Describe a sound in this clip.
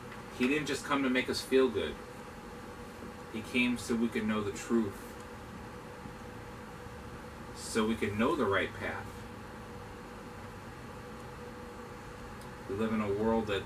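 A man speaks calmly in short phrases with pauses, close by.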